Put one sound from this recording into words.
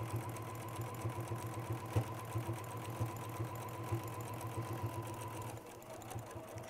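A sewing machine hums steadily as it stitches.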